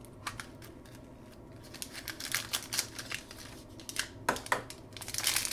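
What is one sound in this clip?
Plastic capsule halves click and rattle as hands twist them apart.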